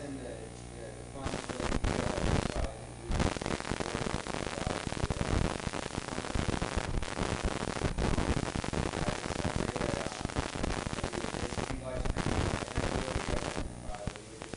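A congregation sings together in an echoing hall.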